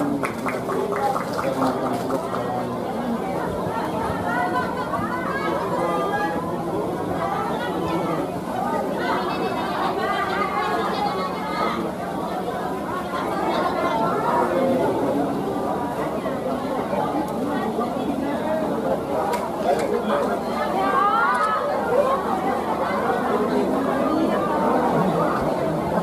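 A crowd of men and women chatters and calls out all around, close by.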